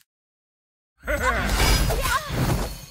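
A magical attack bursts loudly with whooshing, crackling game effects.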